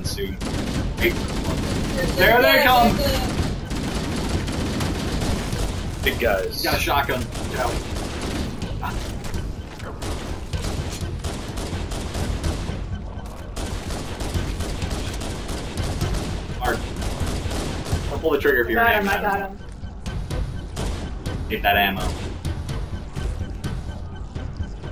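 Gunfire and explosions from a video game sound in bursts.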